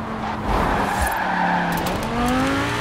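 Tyres screech on tarmac as a car slides through a bend.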